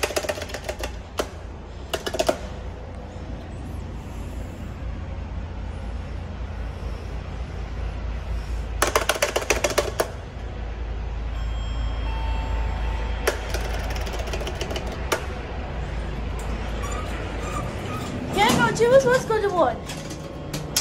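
Elevator buttons click as they are pressed.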